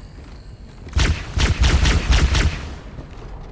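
Energy weapons fire in quick bursts.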